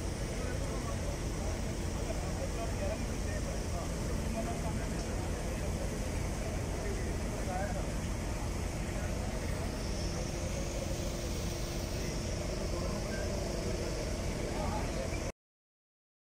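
A crowd of men talk and call out outdoors at night.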